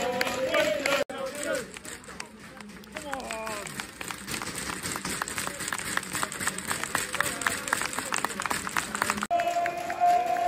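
A crowd claps their hands steadily.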